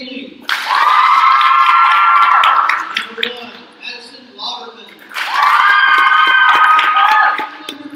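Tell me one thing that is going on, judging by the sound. Young women clap their hands.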